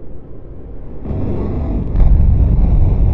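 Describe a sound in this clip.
Two cars crash together with a loud metallic bang.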